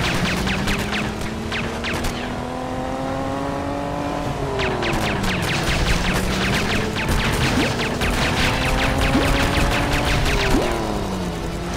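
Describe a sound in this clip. Small objects pop and burst with bright little bangs.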